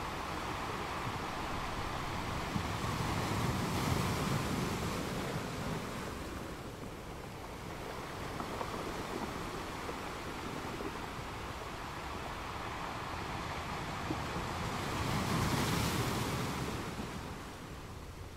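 Foamy water washes and hisses over the rocks.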